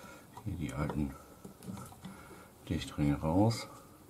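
A screwdriver scrapes and clicks against metal.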